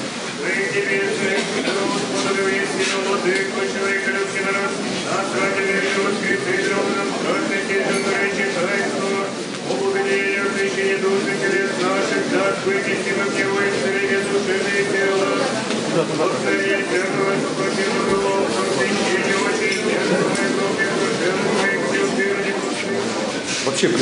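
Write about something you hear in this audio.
A crowd of people sings a slow hymn together in an echoing hall.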